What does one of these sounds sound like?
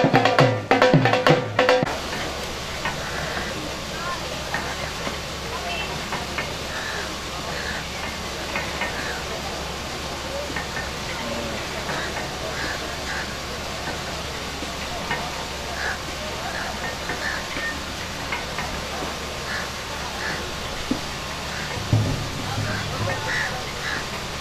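A crowd murmurs and calls out outdoors.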